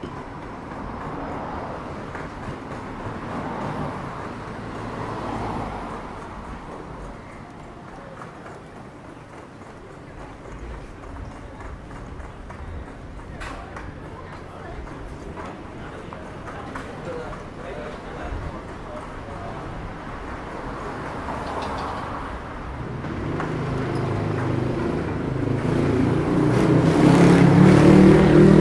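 Traffic hums and cars pass by on a street outdoors.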